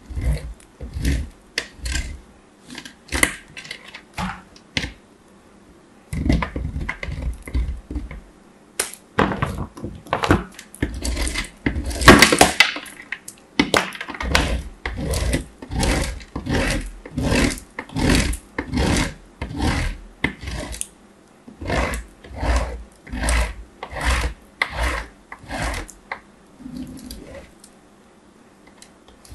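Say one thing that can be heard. Hard chalky pieces scrape and crunch against a metal grater in short strokes.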